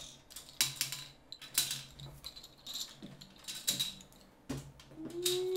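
Plastic game pieces click as they drop into a grid.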